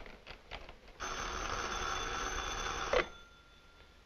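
A telephone rings.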